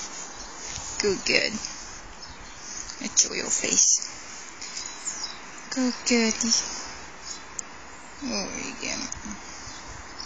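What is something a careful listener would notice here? A small dog growls playfully.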